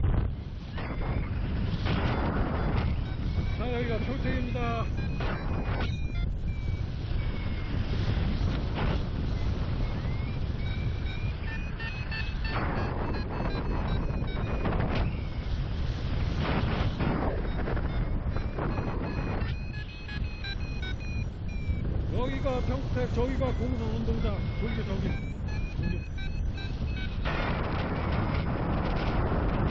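Strong wind rushes and buffets steadily high in the open air.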